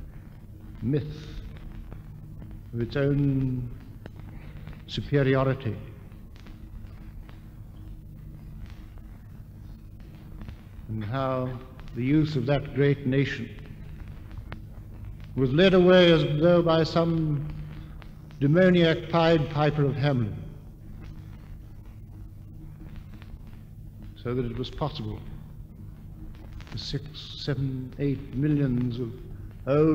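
A man speaks slowly and calmly, with long pauses, heard through an old recording with a steady hum.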